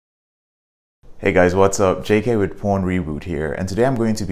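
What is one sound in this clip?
A man speaks calmly and with animation into a close clip-on microphone.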